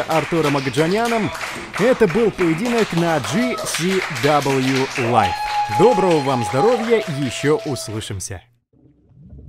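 A crowd cheers and claps in an echoing hall.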